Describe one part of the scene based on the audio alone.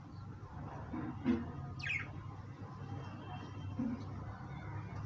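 Pigeons coo softly close by.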